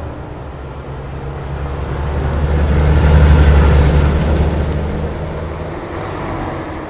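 Another truck rumbles past close by, growing louder and then fading.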